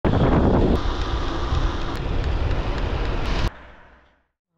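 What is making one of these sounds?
Bicycle tyres hum on rough asphalt.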